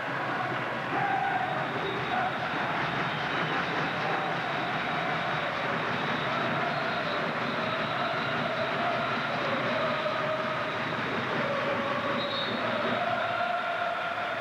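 A large stadium crowd chants and roars steadily in the open air.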